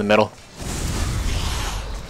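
Flames roar in a burst of fire.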